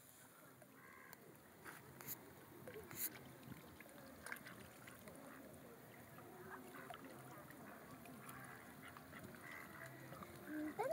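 Water laps gently against the shore.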